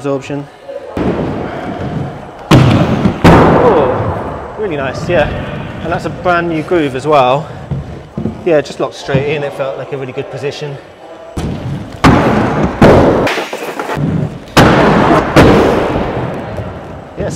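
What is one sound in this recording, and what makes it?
Inline skate wheels roll and grind loudly over a wooden ramp.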